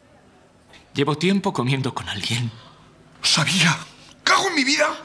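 A second man speaks angrily and loudly.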